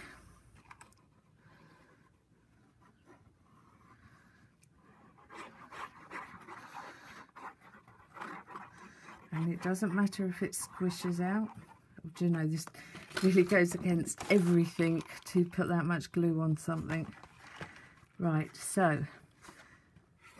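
Thin card rustles and taps as hands handle it.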